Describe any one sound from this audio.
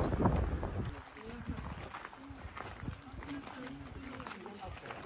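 Footsteps crunch on a gravel path as a group walks.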